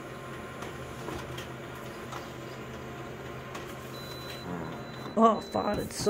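Paper slides out of a copier into its tray.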